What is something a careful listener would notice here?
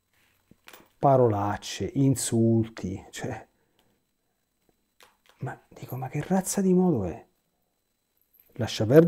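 A middle-aged man speaks calmly and thoughtfully into a close microphone, pausing between phrases.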